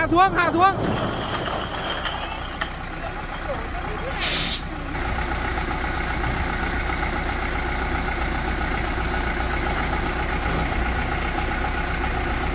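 A truck engine idles with a steady low rumble.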